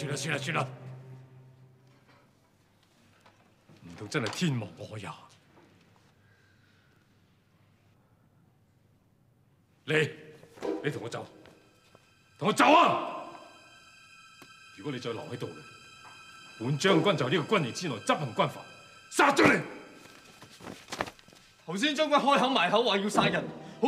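A middle-aged man speaks sternly and forcefully, close by.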